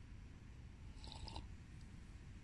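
A metal cup clinks lightly a few times.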